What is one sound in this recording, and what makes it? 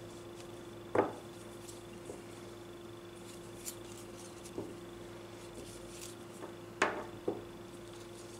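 Metal knitting needles click and tap softly.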